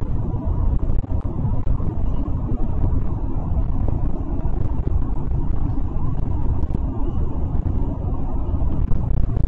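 Small rattles and knocks sound inside a moving bus.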